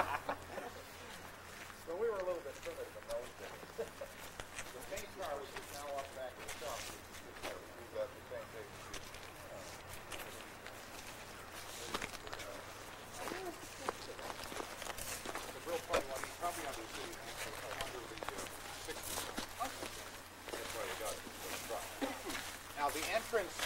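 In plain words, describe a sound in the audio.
Men talk casually nearby, outdoors.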